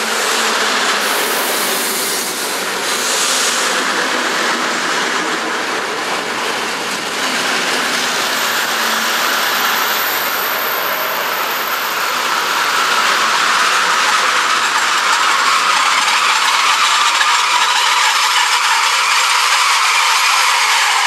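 An electric train rushes past close by with a loud, steady roar.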